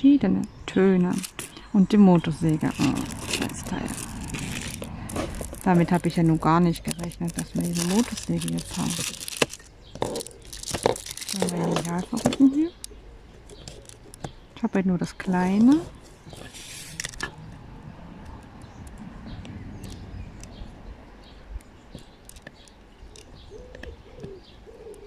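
A plastic pen taps softly and clicks on a textured surface.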